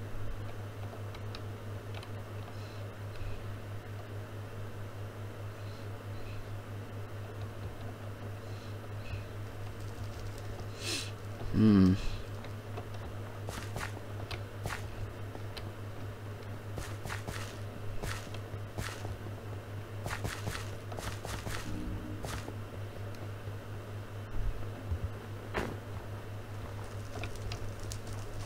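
Footsteps crunch on snow and stone.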